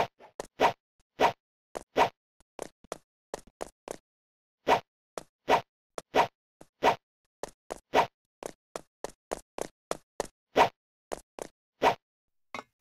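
A game character's footsteps thud in short, uneven bursts.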